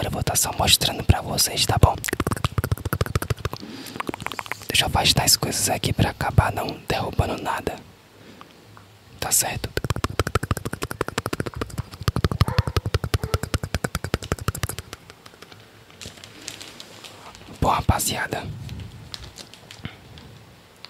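A plastic bag crinkles and rustles close to a microphone.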